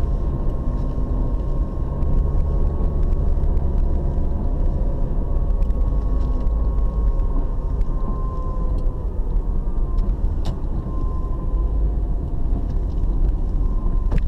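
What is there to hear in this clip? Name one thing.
Windscreen wipers sweep and squeak across the glass.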